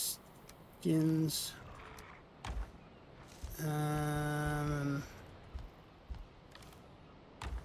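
A wooden chest lid opens with a knock.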